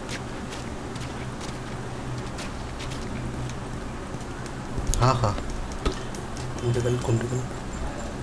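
Footsteps tread slowly over a hard floor.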